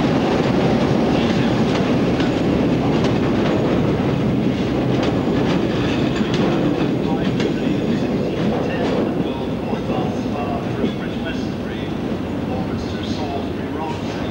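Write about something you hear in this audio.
Train wheels clatter and click over the rail joints.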